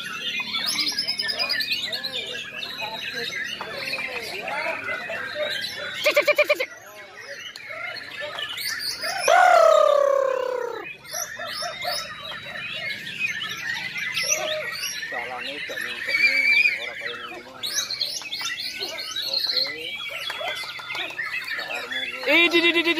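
Many caged white-rumped shamas sing at once in loud, overlapping whistled phrases.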